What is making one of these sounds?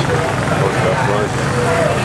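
A motorcycle engine putters past nearby.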